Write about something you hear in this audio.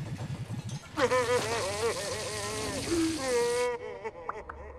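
A cartoon creature wails and sobs loudly.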